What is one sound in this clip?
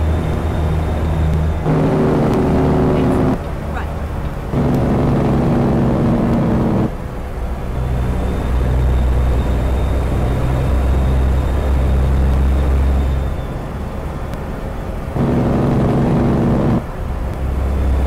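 A diesel semi truck engine drones while cruising on a highway.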